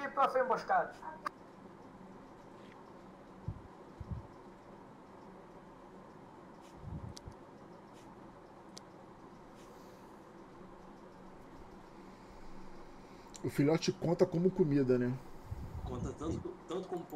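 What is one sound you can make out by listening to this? A man talks into a close microphone in a casual, animated way.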